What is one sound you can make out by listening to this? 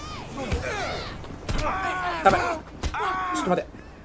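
Punches thud during a street fight.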